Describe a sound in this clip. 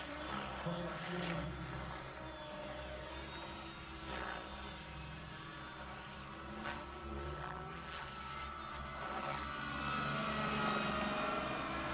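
A model helicopter's engine whines and its rotor buzzes steadily overhead, growing louder as it comes closer.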